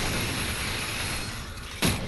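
An energy gun fires with a sharp electric zap.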